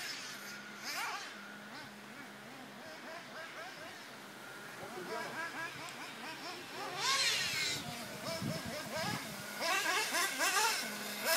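A small electric motor whines, rising and falling in pitch as a model car races on dirt.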